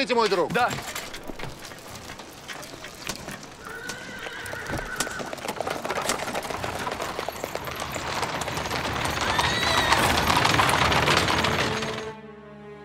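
Carriage wheels rattle over the street.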